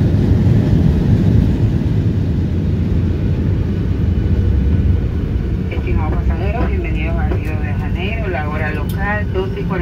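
A jet engine roars loudly and steadily from inside the cabin.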